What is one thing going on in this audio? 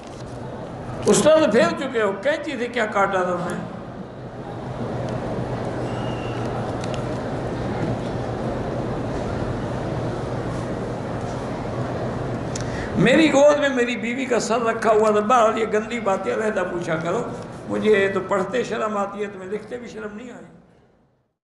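An elderly man speaks slowly and earnestly into a microphone, heard through a loudspeaker.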